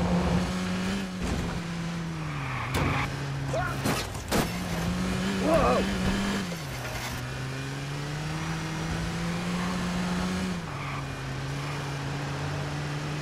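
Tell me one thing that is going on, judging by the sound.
A car engine hums steadily, its pitch shifting as the car speeds up and slows.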